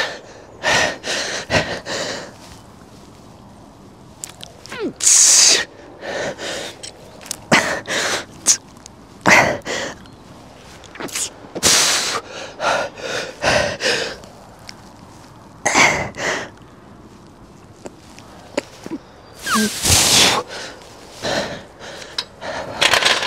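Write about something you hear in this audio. A young man breathes out hard and grunts with each lift.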